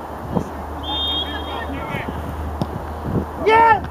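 A football is kicked.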